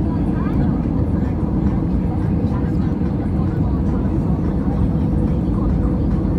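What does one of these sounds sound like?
A jet engine roars steadily close by.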